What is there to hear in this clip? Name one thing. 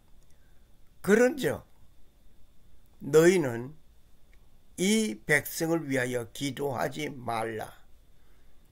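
An elderly man speaks slowly and solemnly into a microphone.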